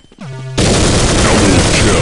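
A rifle fires shots.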